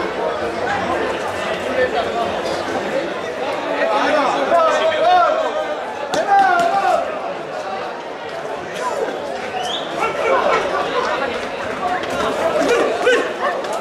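A crowd of men and women talks and shouts outdoors.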